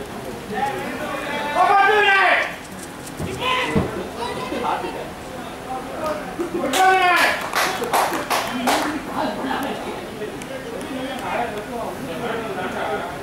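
Men call out and shout to each other outdoors across an open field.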